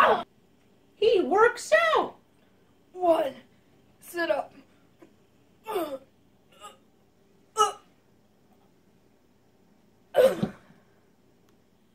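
A young boy groans and moans in short bursts nearby.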